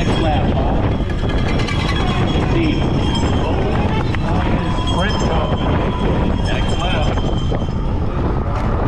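Wind rushes loudly past a bicycle rider at speed.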